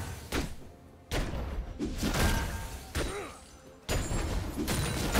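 Game sound effects of spells and hits burst in quick succession.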